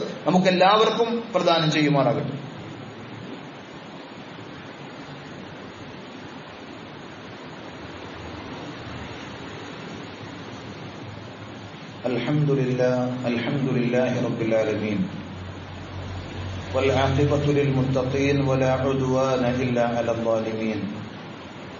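A man speaks into a microphone, delivering a speech with emphasis.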